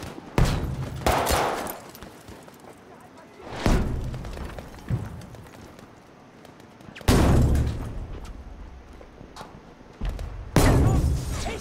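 Pistol shots ring out one at a time, with echoes.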